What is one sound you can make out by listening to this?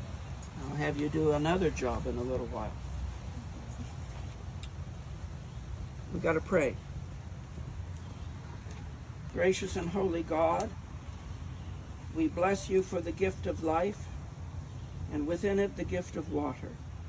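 An elderly man speaks calmly nearby, in short phrases.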